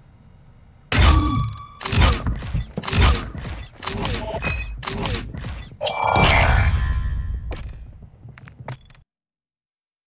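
A video game's score tally ticks and chimes as points add up.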